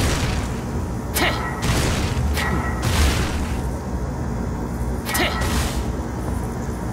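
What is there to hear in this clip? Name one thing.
Sharp whooshing slashes cut through the air.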